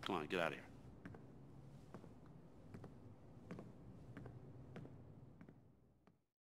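Footsteps walk slowly across a wooden floor.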